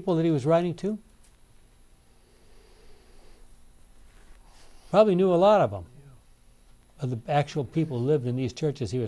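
An elderly man speaks calmly into a microphone, pausing now and then.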